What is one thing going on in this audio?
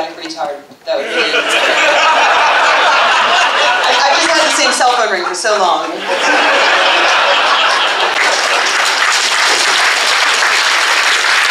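An audience claps loudly and steadily.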